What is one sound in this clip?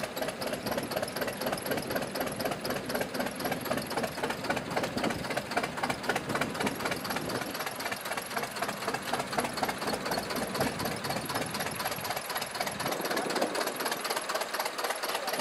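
A tractor engine rumbles steadily nearby.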